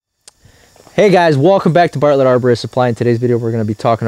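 A young man speaks clearly and with animation into a close microphone.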